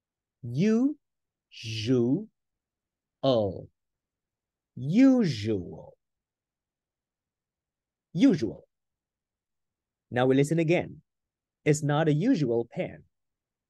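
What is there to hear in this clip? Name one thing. A young man speaks with animation through a microphone, in short bursts with pauses.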